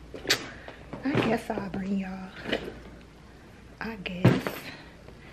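A young woman speaks casually, close by.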